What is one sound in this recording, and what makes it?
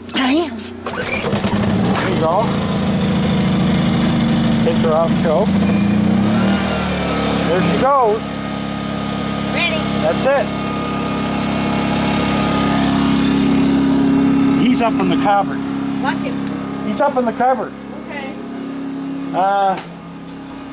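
A small generator engine runs with a steady hum.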